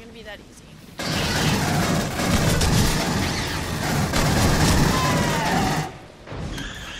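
A rifle fires rapid, loud bursts.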